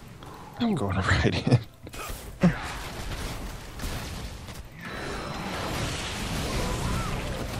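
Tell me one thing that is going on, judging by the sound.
Magic blasts crackle and boom in a fast battle.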